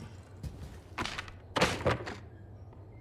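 A wooden panel thuds shut.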